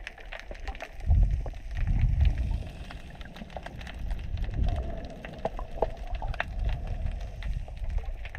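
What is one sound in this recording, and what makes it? Water rumbles in low, muffled surges.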